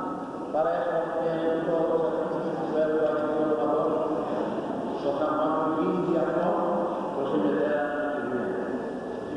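Men chant together loudly in an echoing room.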